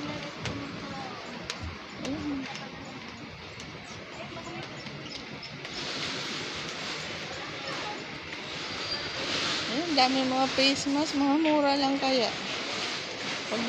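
Voices of shoppers murmur indistinctly nearby.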